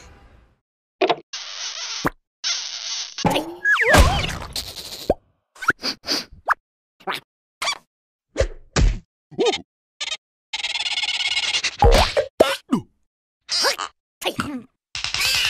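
Cartoon creatures babble and squeal in high, squeaky voices.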